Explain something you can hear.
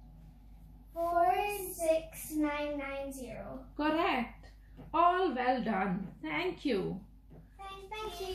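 Young girls sing together close by.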